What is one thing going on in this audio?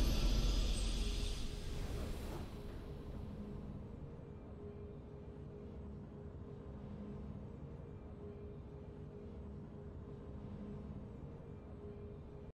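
A triumphant victory fanfare plays softly.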